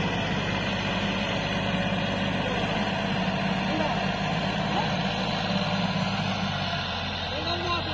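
A tractor engine chugs as the tractor drives off.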